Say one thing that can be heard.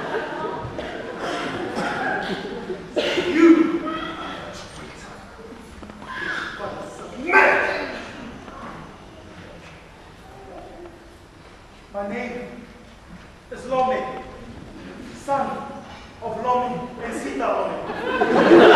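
A man speaks loudly from a stage in a large echoing hall.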